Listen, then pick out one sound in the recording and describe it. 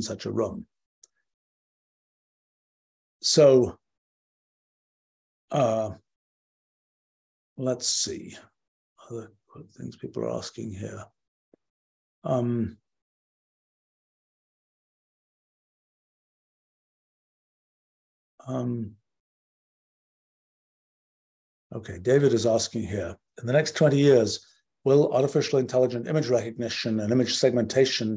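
A middle-aged man speaks calmly and haltingly over an online call, with long pauses.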